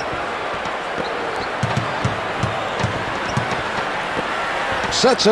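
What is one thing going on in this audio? A basketball bounces with dull, regular thumps.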